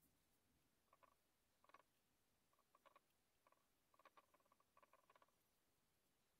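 A paintbrush dabs and taps on a ceramic plate.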